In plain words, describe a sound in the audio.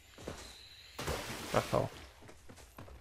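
Water splashes as a game character wades through a stream.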